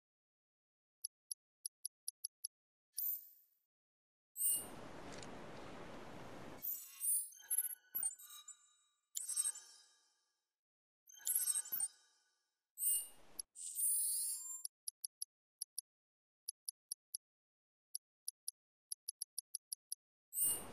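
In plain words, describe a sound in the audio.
Soft menu clicks tick in quick bursts as a cursor moves through a list.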